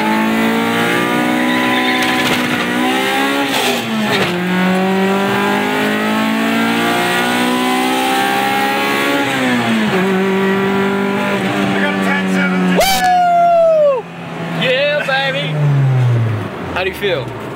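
A car engine roars loudly, revving high and dropping with each gear shift.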